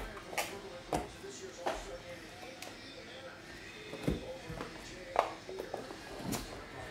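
Hands tap and knock a cardboard card box.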